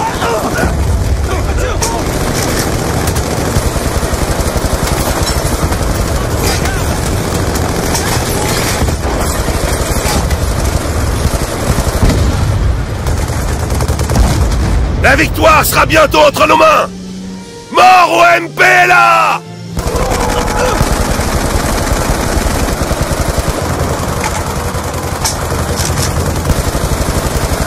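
Rifles fire in rapid, rattling bursts.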